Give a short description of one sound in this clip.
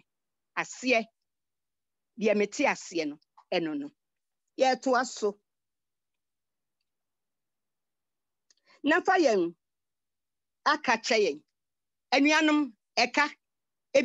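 An elderly woman speaks with animation in short bursts over an online call.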